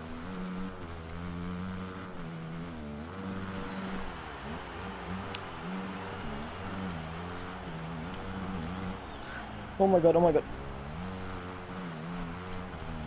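A motocross bike engine revs and drops in pitch as it races over jumps.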